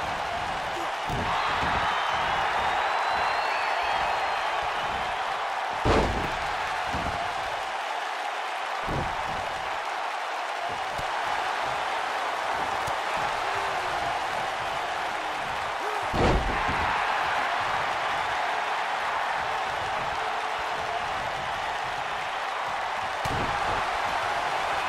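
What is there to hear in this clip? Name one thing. A large crowd roars and cheers steadily throughout.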